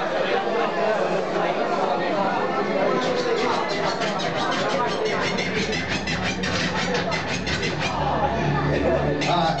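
A large crowd of young people chatters and shouts loudly.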